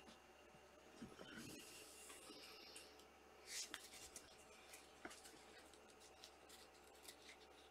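Trading cards rustle and click as hands shuffle through a stack.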